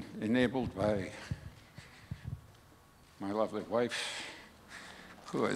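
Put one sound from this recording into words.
An elderly man speaks slowly into a microphone, in pauses.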